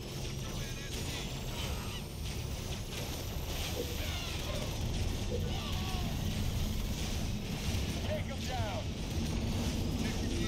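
Energy beams hum and crackle steadily as units fire.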